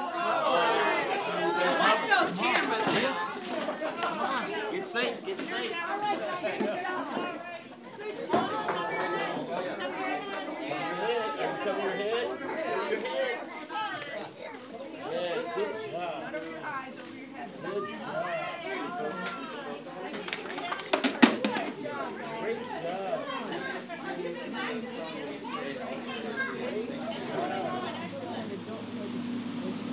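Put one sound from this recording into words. Young children chatter and talk over one another nearby.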